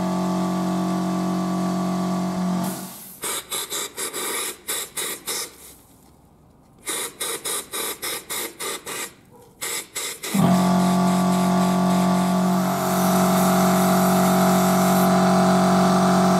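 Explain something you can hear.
An electric drill motor whirs steadily.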